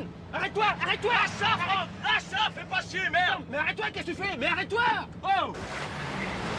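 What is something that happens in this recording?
A man shouts inside a car.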